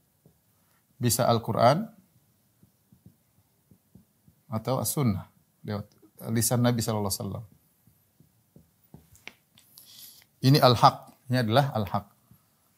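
A man speaks calmly and clearly, close by, in short phrases.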